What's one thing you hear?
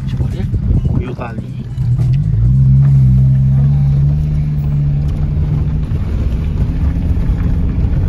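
A car engine rumbles and revs up, then settles.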